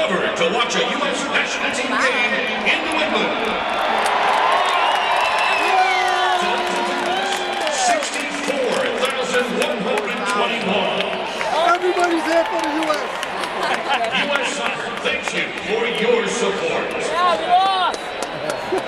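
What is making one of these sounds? A large crowd cheers and chants in an open stadium.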